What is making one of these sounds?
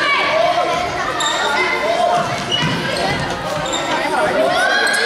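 Sneakers squeak sharply on a hard indoor court, echoing in a large hall.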